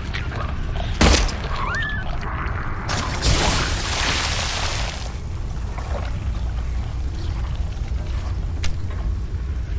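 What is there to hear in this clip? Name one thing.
A pistol fires loud single shots.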